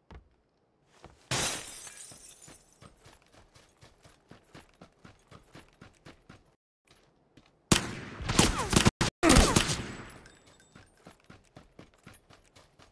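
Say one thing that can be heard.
Footsteps run over grass and dirt.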